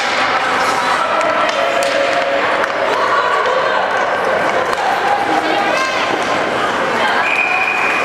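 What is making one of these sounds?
Children shout and call out in an echoing rink.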